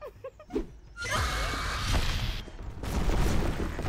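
A creature screeches loudly.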